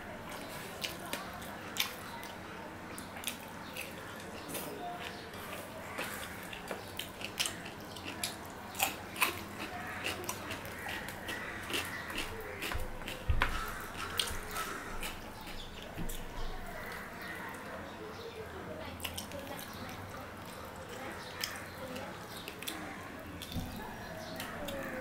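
A man chews food noisily with his mouth open.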